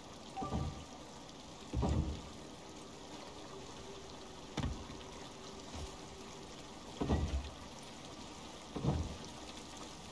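Heavy wooden beams thud into place, one after another.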